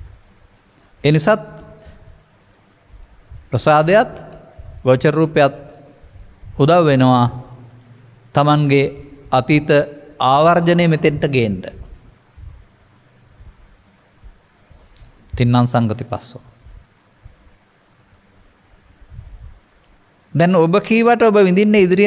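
An elderly man speaks calmly into a microphone, in bursts with pauses.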